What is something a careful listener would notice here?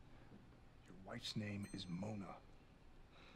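A man speaks in a low, tense voice from a television drama.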